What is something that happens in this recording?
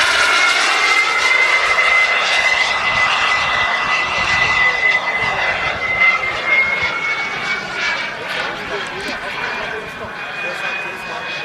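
A jet engine roars loudly overhead with a high whine, slowly fading.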